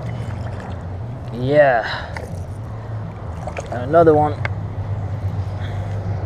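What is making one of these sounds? A fish splashes at the water's surface.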